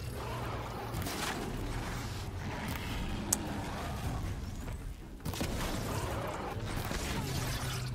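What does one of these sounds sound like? A bow shoots arrows with sharp whooshes.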